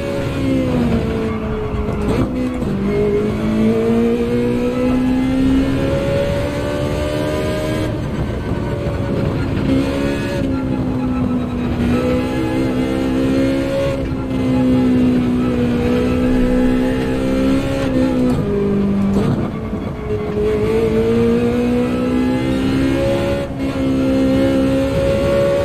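A racing car engine roars steadily, its pitch rising and dipping with gear changes.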